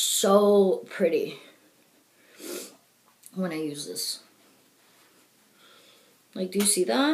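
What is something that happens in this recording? A woman speaks calmly close to a microphone, in short phrases.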